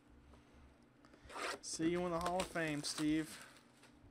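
Plastic wrap crinkles and tears off a box.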